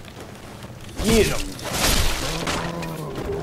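A sword strikes a creature with a heavy thud.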